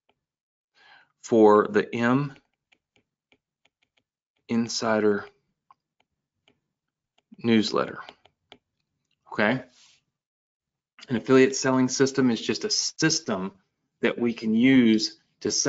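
A man speaks calmly into a close microphone, in short phrases with pauses.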